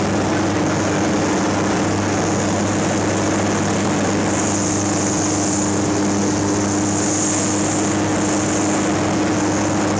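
Wind rushes loudly past an open cockpit.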